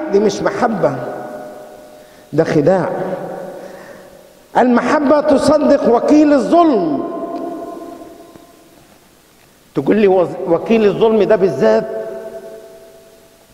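An elderly man speaks slowly and calmly through a microphone and loudspeakers, in short phrases that echo through a large hall.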